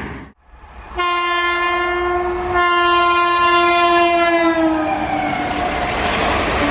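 An electric locomotive sounds its horn.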